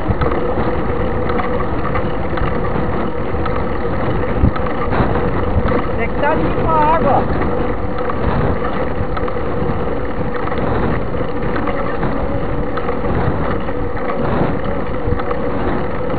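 A vehicle's engine drones steadily while driving along a road.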